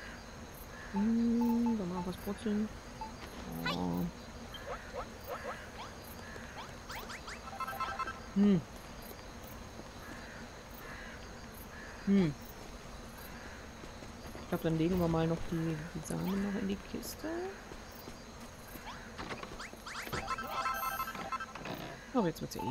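Short electronic tunes and chimes play in bursts.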